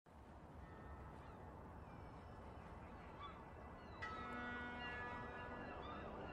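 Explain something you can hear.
Water laps gently against a shore.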